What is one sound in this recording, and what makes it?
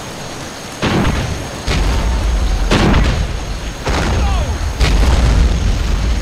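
Explosions boom and rumble one after another.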